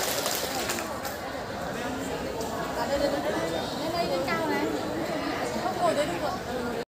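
Lively music plays loudly through loudspeakers in a large hall.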